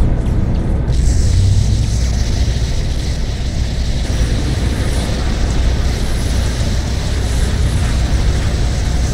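An aircraft's jet engines roar steadily.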